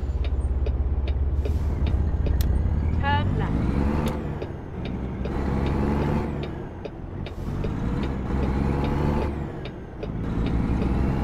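A truck engine rumbles loudly, its pitch rising and falling as it shifts gears.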